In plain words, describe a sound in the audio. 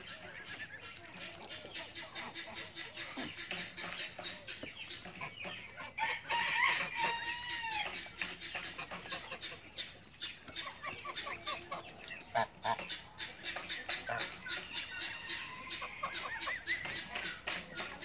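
Geese dabble and splash their bills in shallow water.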